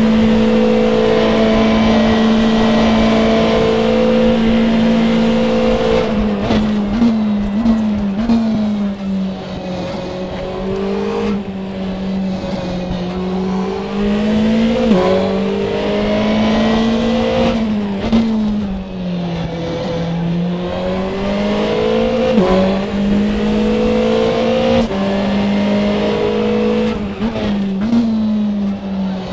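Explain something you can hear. A racing car engine roars at high revs, dropping in pitch with each gear change and climbing again.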